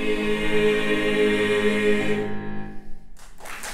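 A choir sings together in a resonant hall.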